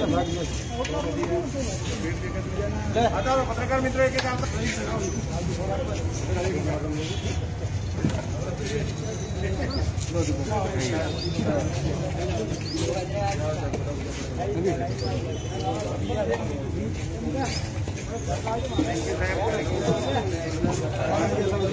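Several men talk among themselves nearby, outdoors.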